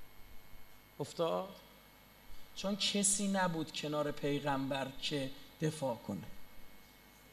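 A man speaks with feeling over a loudspeaker in a large echoing hall.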